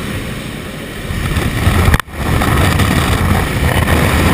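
Wind rushes loudly through an open aircraft door.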